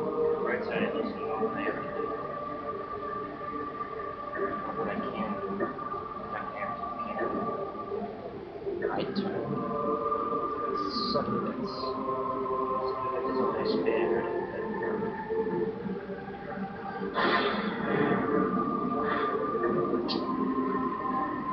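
Electronic game music plays steadily through a small television speaker.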